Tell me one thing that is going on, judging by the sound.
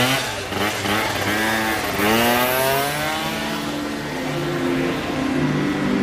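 A scooter engine hums as it rides past.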